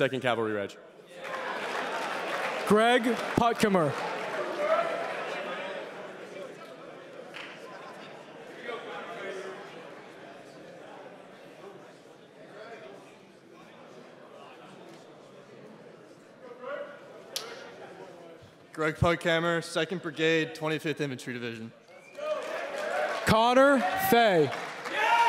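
A crowd of young men cheers and shouts in a large hall.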